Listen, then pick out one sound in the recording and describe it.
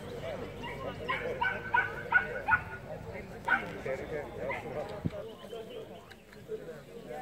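Men and women chat at a distance in an open-air crowd.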